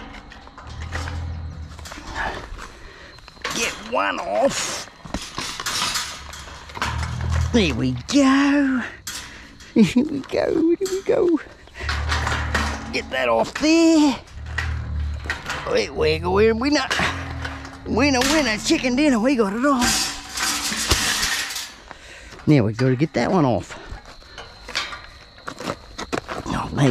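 Boots crunch on gravelly ground.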